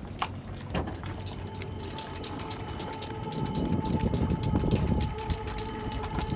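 Water laps gently against a wooden dock.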